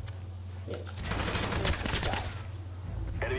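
Gunshots fire in a rapid burst.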